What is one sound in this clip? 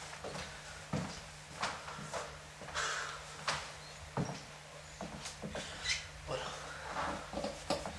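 A man walks with soft footsteps.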